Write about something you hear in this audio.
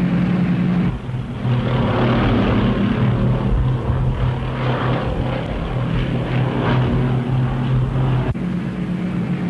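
Propeller engines roar as a flying boat passes close by.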